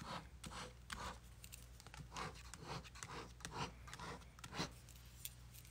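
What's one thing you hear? A marker squeaks as it draws on paper.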